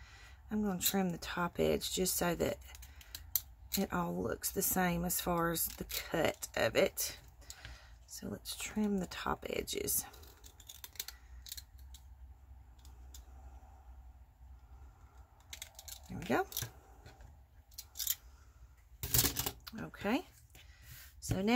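A paper punch clicks as it cuts through paper.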